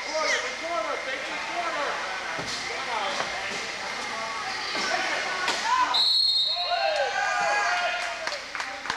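Wheelchair tyres squeak sharply on a hard floor in a large echoing hall.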